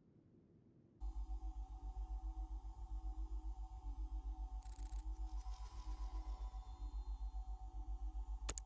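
A low electronic hum pulses steadily.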